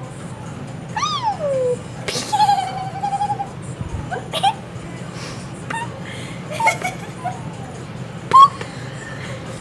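A young woman makes silly, high-pitched vocal noises close by.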